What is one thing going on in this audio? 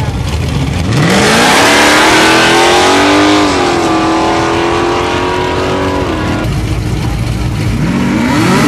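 A car engine revs loudly and roars.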